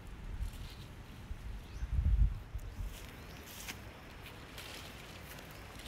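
Leaves rustle as a hand pulls on a branch.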